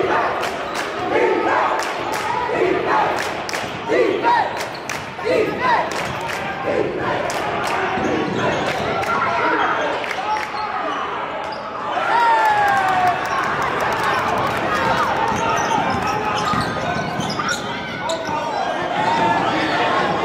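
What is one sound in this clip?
A basketball bounces on the court with repeated thuds.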